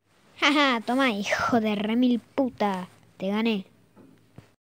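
A young man speaks playfully in a cartoonish voice.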